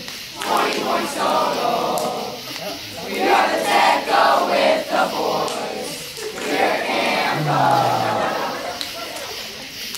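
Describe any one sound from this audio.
A group of children sing and chant loudly together.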